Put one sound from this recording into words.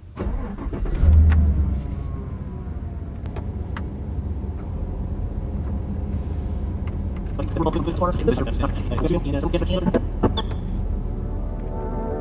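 A car engine starts with a roar and settles into a low, steady idle.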